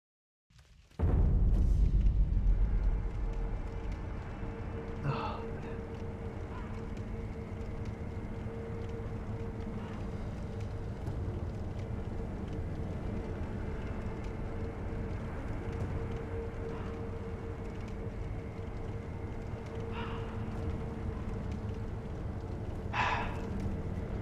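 A fire crackles softly in a brazier.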